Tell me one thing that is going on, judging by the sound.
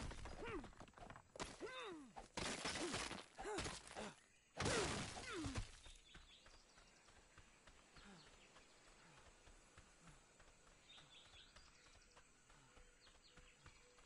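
Footsteps run on a dirt forest floor.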